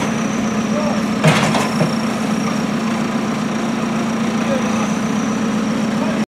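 A backhoe engine idles with a steady low rumble.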